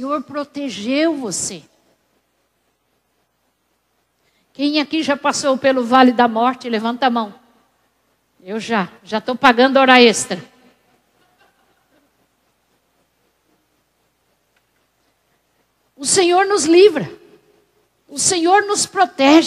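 A woman preaches with animation through a microphone, pausing between phrases.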